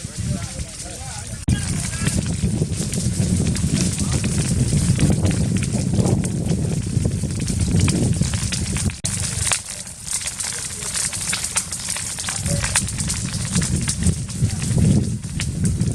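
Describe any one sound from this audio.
Burning branches crackle and pop sharply.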